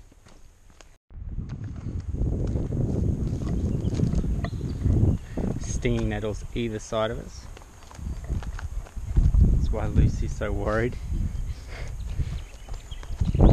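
Footsteps crunch over a fallen log and dry ground.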